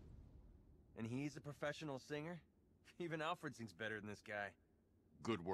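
A young man speaks with sarcastic animation.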